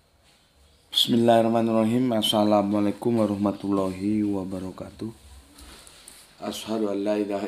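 A middle-aged man speaks close by in a slow, drawn-out voice.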